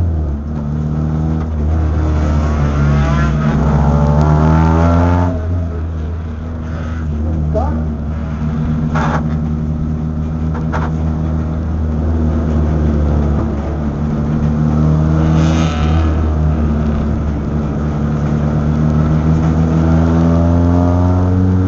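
A race car engine roars loudly from inside the cabin, rising and falling in pitch.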